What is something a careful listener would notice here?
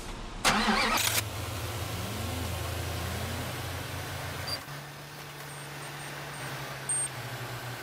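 A truck engine rumbles and idles steadily.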